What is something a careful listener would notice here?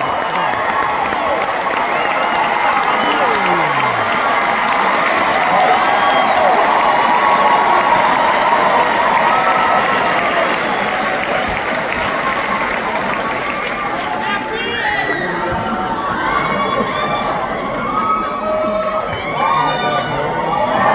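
A large audience chatters and murmurs in an echoing hall.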